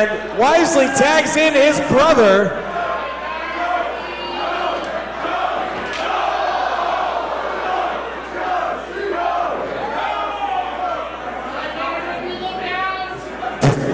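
A crowd of spectators shouts and cheers loudly close by.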